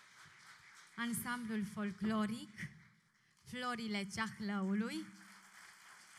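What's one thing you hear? A choir of men and women sings together in unison, heard through a microphone in a large hall.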